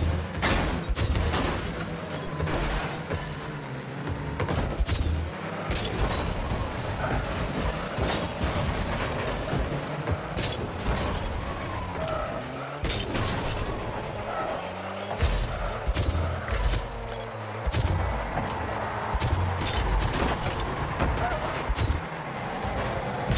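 A racing car engine hums and revs steadily.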